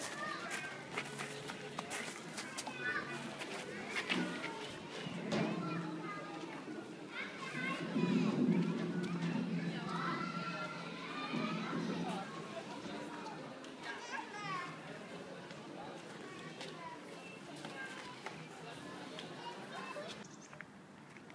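Young children shout and call out while playing outdoors.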